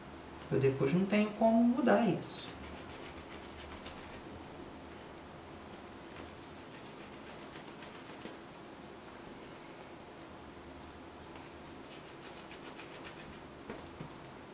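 Soft clay is squeezed and rolled between hands.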